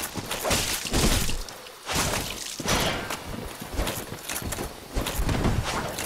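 A sword clashes and slashes against an enemy.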